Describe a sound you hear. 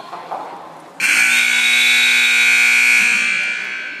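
A buzzer sounds loudly.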